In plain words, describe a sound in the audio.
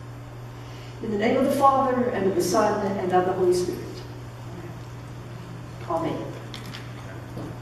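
A woman speaks clearly and steadily in a large, echoing room.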